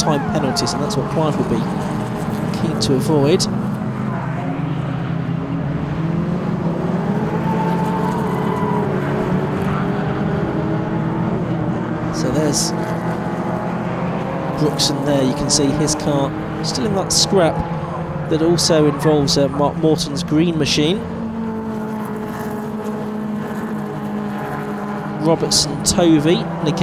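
Racing car engines roar and drone past steadily.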